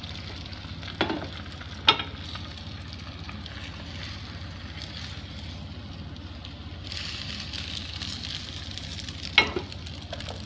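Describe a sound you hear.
A metal pan clanks on a stove grate.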